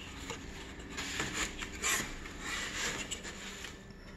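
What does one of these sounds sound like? Tissue paper rustles and crinkles as it is handled.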